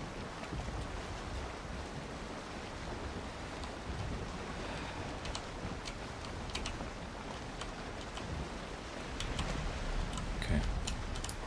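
A man talks calmly and close into a microphone.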